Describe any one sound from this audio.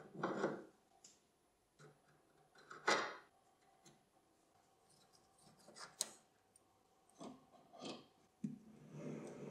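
Metal parts clink and knock together.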